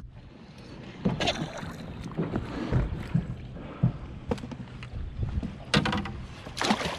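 A hooked fish splashes at the surface of the water close by.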